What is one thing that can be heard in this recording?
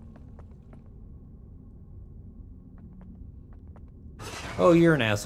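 Soft footsteps tap on stone.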